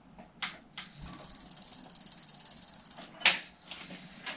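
A bicycle wheel spins with a fast ticking whir.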